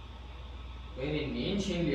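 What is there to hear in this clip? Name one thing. A young man speaks loudly nearby.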